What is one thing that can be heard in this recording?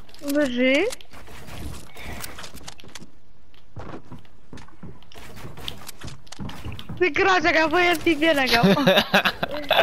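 Footsteps thump on hollow wooden ramps as a game character runs and climbs.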